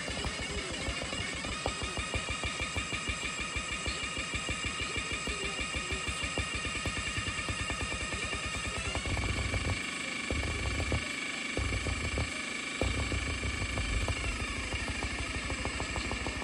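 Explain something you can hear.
Fast electronic music plays from a tablet speaker.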